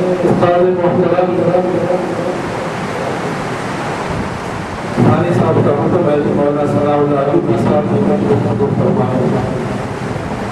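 An elderly man chants in a drawn-out voice through a microphone, echoing in a large hall.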